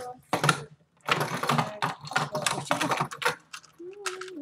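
A plastic puzzle cube clicks and clacks as it is twisted fast.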